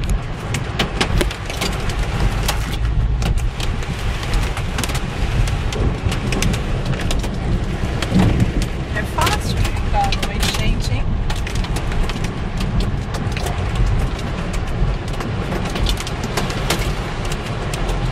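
Heavy rain drums hard on a car's windscreen and roof.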